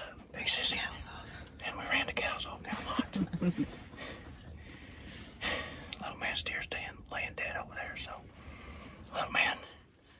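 A young woman whispers close by.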